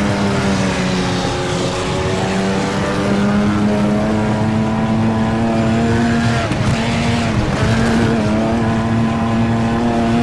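A race car engine roars at high revs, shifting gears.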